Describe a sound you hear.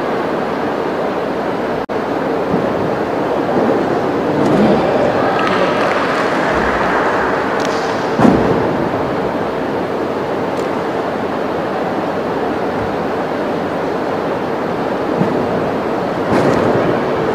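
A gymnast's feet thud on a sprung floor on landing.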